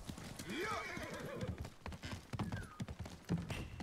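Horse hooves clatter on a wooden bridge.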